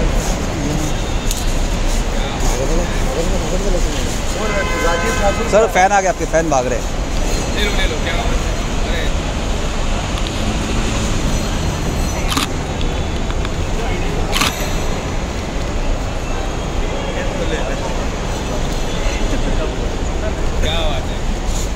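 A man talks casually with people nearby.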